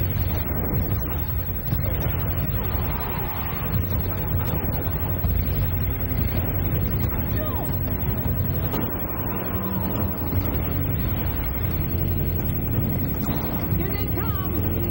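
Heavy vehicle engines rumble steadily.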